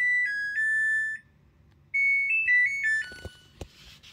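A washing machine's control panel plays a short electronic beep melody.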